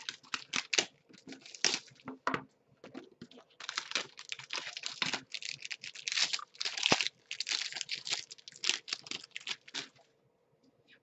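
Plastic wrappers crinkle and rustle as hands tear open card packs.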